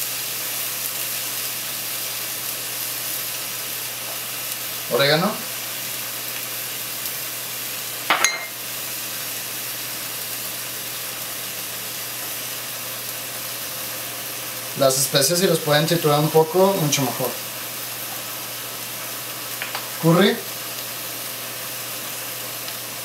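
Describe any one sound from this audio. Meat sizzles steadily in a hot pan.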